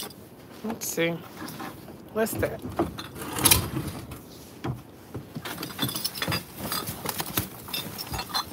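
Plastic bags rustle and crinkle as gloved hands handle them.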